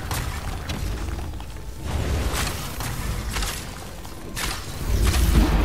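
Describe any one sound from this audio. Arrows whoosh and strike with sharp thuds.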